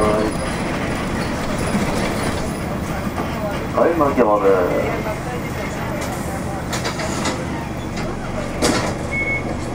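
A car drives along a road with a steady rumble of engine and tyres.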